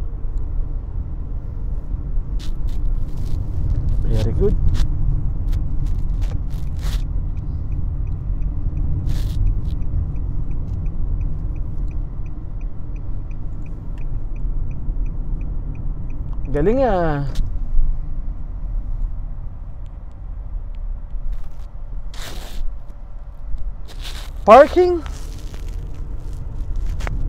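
A car engine hums steadily with low road rumble from inside the car.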